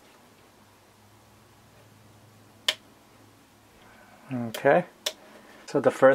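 A toggle switch on a handheld controller clicks.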